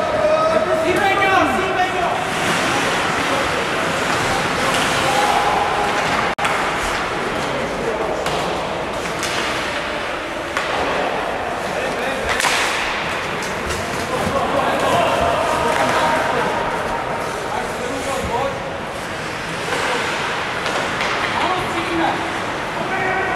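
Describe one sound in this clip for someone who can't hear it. A crowd of spectators cheers and shouts in a large echoing arena.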